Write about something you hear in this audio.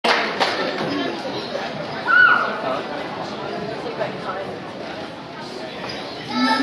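An audience murmurs and chatters in a large echoing hall.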